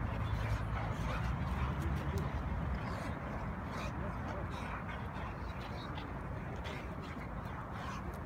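Paws scuff on dry grass and dirt.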